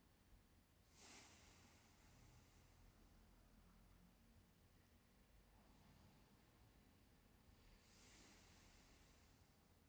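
A man exhales slowly and deeply.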